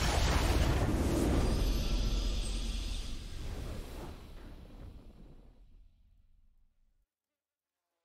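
A triumphant game victory fanfare swells and slowly fades away.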